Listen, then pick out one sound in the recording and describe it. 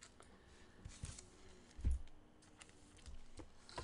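Cards rustle and tap as they are handled.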